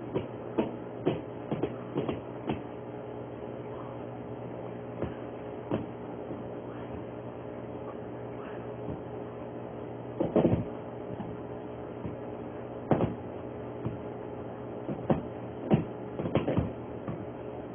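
A dog shuffles and thumps about on a soft couch.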